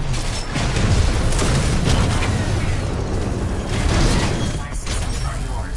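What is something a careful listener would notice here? Heavy metal robots clash and thud in a fight.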